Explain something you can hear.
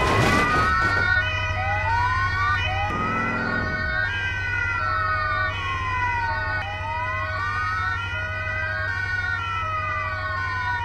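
A siren wails up and down nearby.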